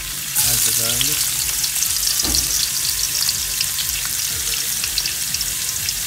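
Garlic sizzles and crackles in hot oil.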